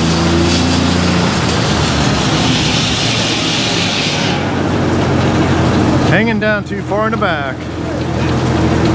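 A sawmill engine rumbles and clatters steadily.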